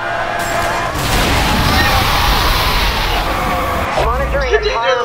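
Tyres burst and screech as a car skids over a spike strip.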